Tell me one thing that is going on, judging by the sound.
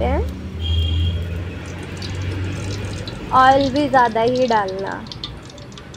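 Oil pours into a metal pan.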